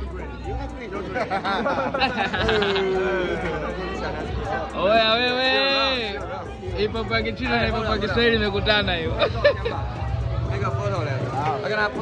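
A young man talks loudly and excitedly close by.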